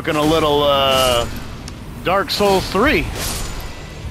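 A sword swings and strikes with sharp clangs.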